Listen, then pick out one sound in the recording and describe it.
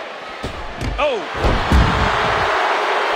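A wrestler's body thuds onto the arena floor.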